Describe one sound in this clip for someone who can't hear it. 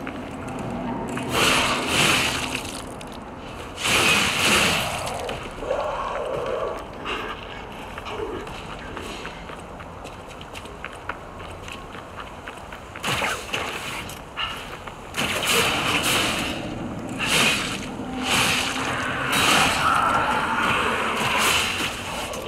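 A heavy blade swings and strikes enemies in a fight.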